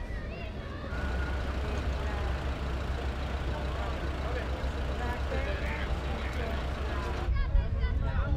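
A woman talks on a phone close by.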